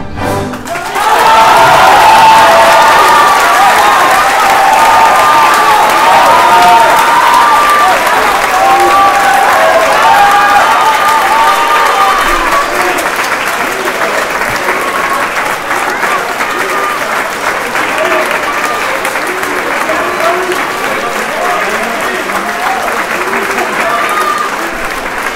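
A large choir of men and women sings loudly in a big echoing hall.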